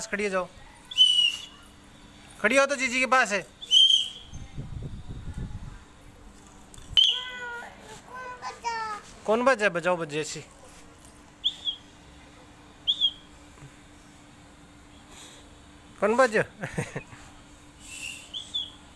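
A toy whistle chirps in short high tweets.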